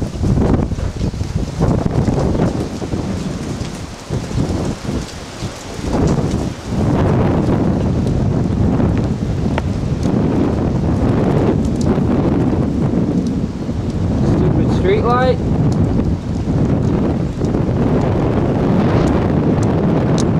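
Strong wind roars and gusts outdoors during a storm.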